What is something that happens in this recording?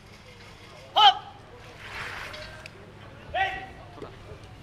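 A group of young women shout a short call together.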